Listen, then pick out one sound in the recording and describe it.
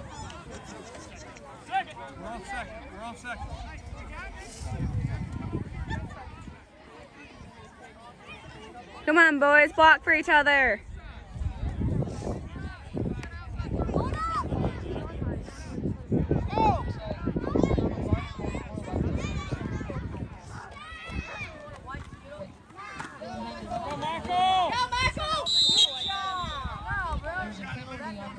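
A crowd of spectators talks and cheers from the stands outdoors.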